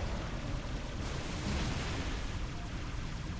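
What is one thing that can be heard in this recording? Laser blasts fire with a crackling hiss.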